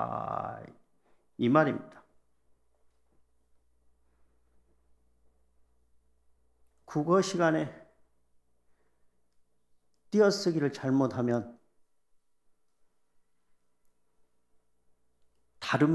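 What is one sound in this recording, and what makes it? An elderly man speaks calmly into a microphone, in short phrases with long pauses.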